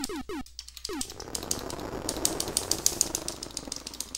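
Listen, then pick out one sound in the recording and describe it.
Electronic game explosions hiss and crackle.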